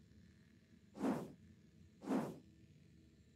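Short soft blips sound.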